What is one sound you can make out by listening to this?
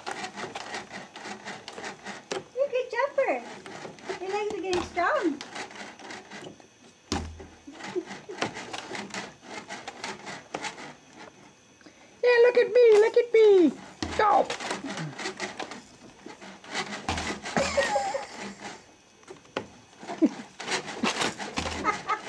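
A baby bouncer creaks and thumps as it bounces.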